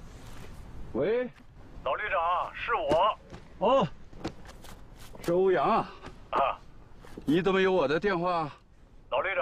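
A middle-aged man talks on a phone outdoors.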